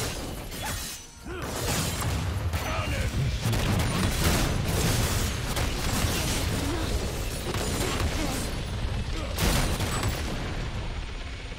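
Magic spells burst and crackle in a busy game battle.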